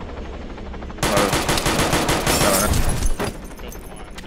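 A pistol fires a rapid string of loud shots.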